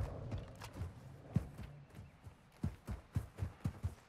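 Footsteps crunch quickly on sand.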